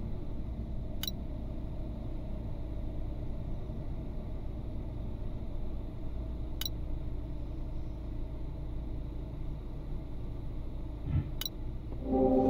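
Short, sharp game clicks sound now and then.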